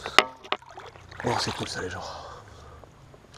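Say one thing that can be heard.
Hands splash in shallow river water.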